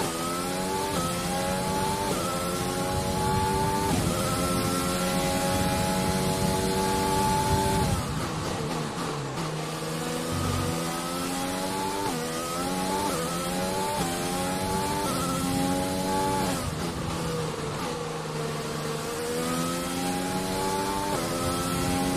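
A racing car engine whines loudly, revving up and dropping sharply with each gear change.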